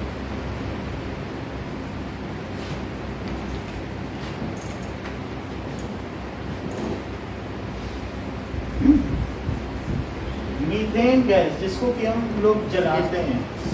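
A duster rubs across a whiteboard.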